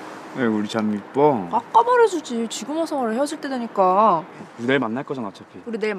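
A young woman speaks softly and emotionally.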